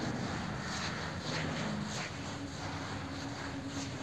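A duster rubs across a board.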